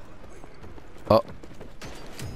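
A sharp blow strikes once.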